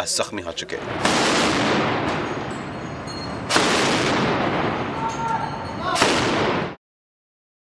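A heavy machine gun fires in loud bursts.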